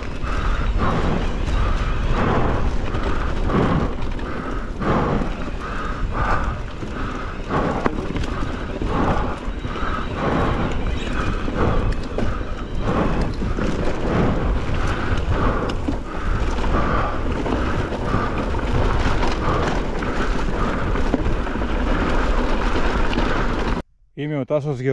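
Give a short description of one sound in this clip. Bicycle tyres roll and bump over rough, grassy ground.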